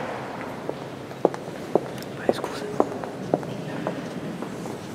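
Boot heels click sharply on a hard floor in a large echoing hall.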